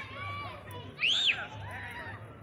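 A young child squeals loudly nearby.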